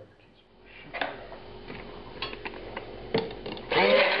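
A hand blender knocks against a glass.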